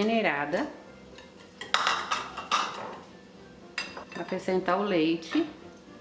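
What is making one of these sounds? A whisk stirs flour into batter.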